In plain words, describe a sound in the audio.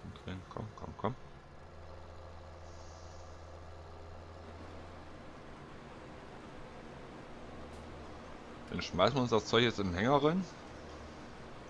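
A combine harvester rumbles nearby.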